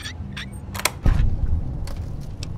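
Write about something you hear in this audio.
A lock turns open with a heavy clunk.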